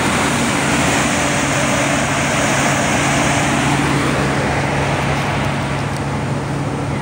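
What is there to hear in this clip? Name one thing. A combine harvester engine runs loudly nearby with a rushing, threshing roar.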